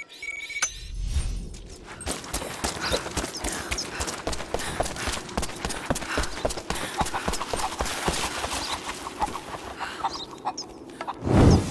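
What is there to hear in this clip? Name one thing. Footsteps run quickly over gravel and stone.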